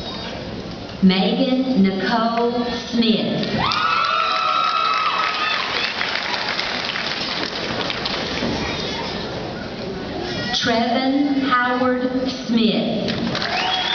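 A woman reads out names through a loudspeaker in a large echoing hall.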